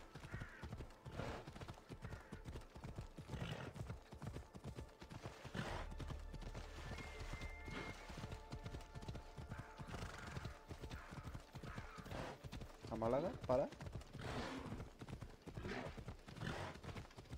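A horse gallops steadily over a dirt path with quick, thudding hoofbeats.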